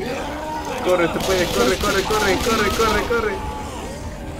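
Rapid gunshots crack in quick succession.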